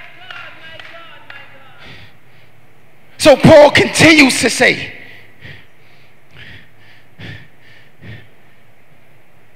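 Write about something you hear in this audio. A young man preaches with animation into a microphone, heard through loudspeakers in a large echoing hall.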